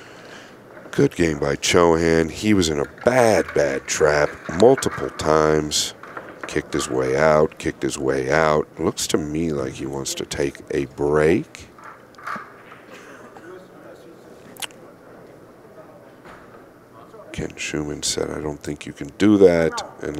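A man comments calmly into a microphone.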